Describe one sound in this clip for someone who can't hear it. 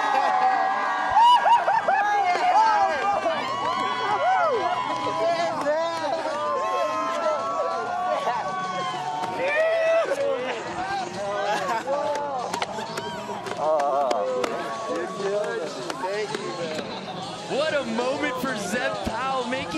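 A crowd cheers and screams excitedly outdoors.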